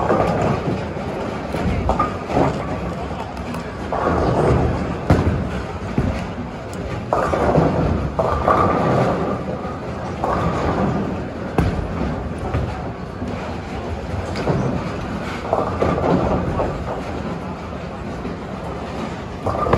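Bowling balls crash into pins.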